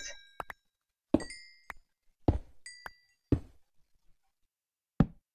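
Stone blocks break with sharp crunching thuds, one after another.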